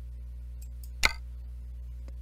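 A game menu button clicks once.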